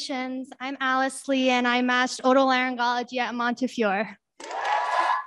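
A young woman speaks with animation through a microphone.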